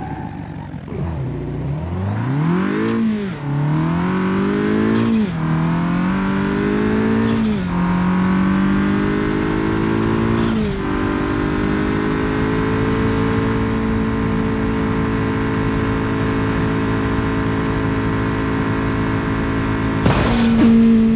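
A car engine revs hard and climbs through the gears.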